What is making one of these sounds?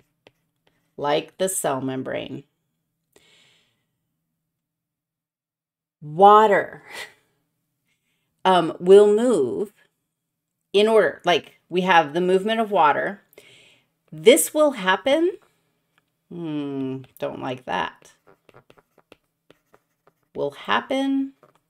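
A woman speaks with animation close to a microphone, in short bursts with pauses.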